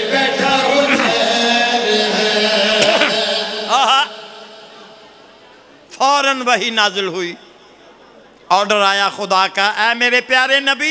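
An older man chants loudly through a microphone and loudspeakers.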